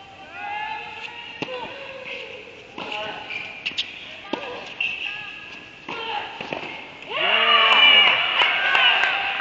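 Tennis shoes squeak on the court.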